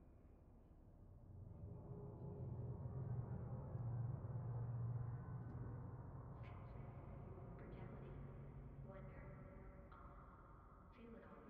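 A spaceship engine rumbles deeply, swelling and then slowly fading.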